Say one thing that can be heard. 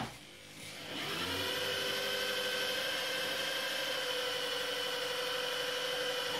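An engine idles with a steady hum.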